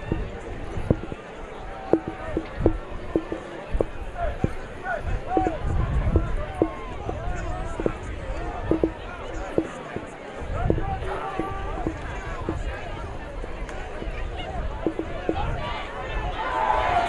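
A crowd murmurs in an open stadium.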